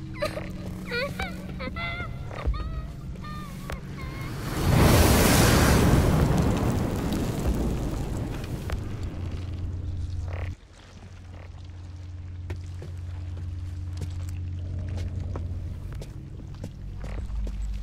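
Footsteps sound on the floor.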